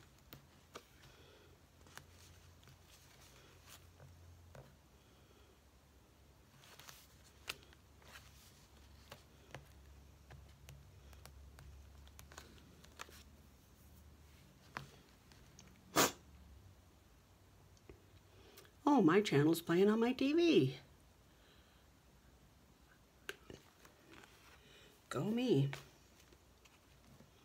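Paper rustles softly.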